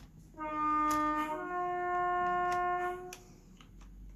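A train horn blows two long tones, one higher and one lower.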